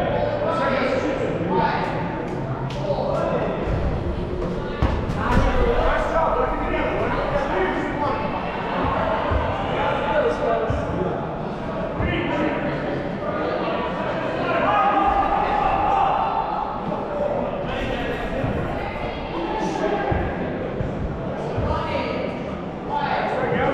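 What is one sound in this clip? Many players shout and call out to each other in a large echoing hall.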